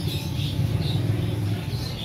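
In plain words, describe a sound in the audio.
A pigeon flaps its wings.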